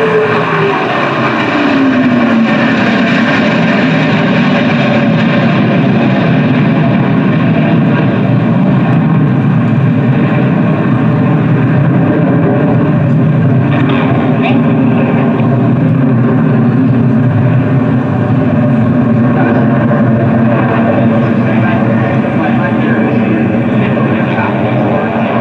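A jet engine roars loudly overhead, its pitch dropping at first and then holding as a steady rumble.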